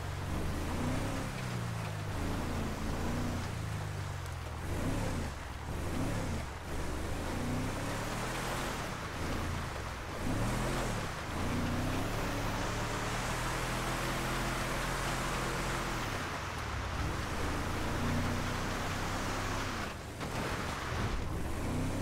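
Tyres crunch over snowy gravel.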